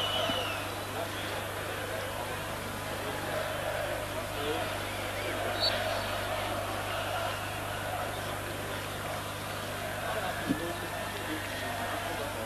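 A large stadium crowd roars and chants steadily.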